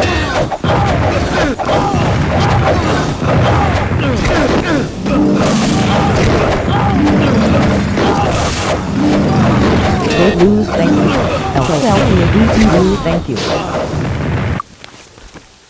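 Magical blasts crackle and boom in quick succession.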